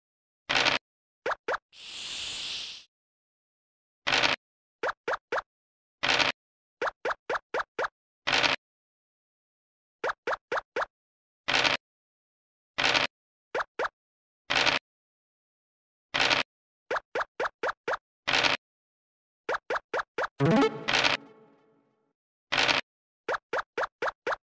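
A game's dice rattles as it rolls.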